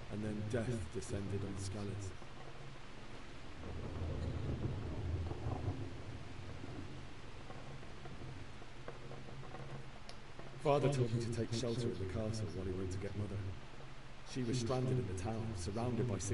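A young man speaks in a low, weary voice, close by.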